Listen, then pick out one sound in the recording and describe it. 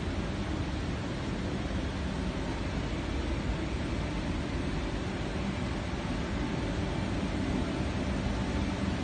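A sports car engine idles with a deep, steady rumble nearby.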